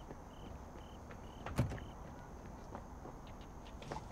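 Footsteps hurry across pavement.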